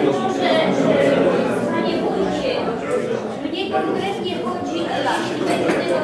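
An elderly man speaks up from among the audience.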